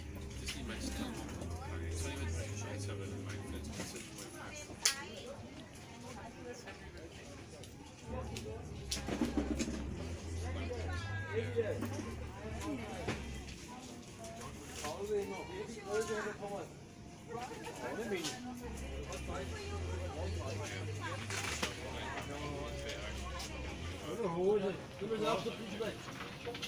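Men and women talk casually nearby.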